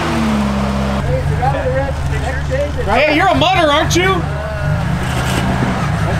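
A truck engine rumbles as the truck crawls over rocks.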